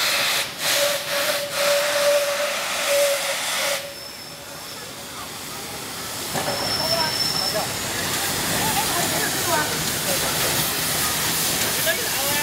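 A steam locomotive chugs and hisses as it approaches.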